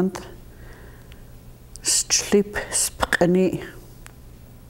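An elderly woman speaks calmly into a close microphone.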